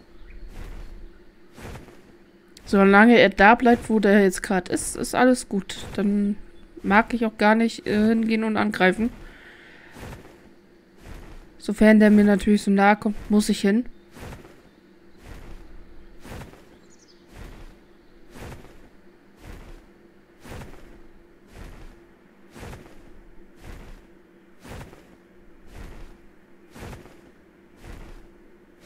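Large wings beat with a steady, regular whoosh.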